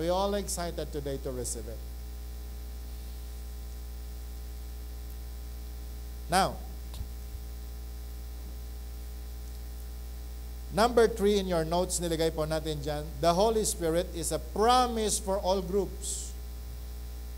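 A middle-aged man speaks with animation into a microphone, with long pauses.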